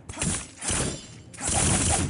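A blade swishes through the air.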